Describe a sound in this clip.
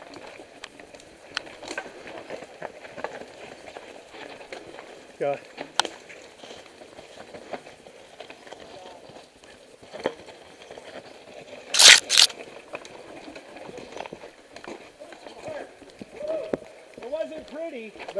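A bicycle frame clanks over bumps and roots.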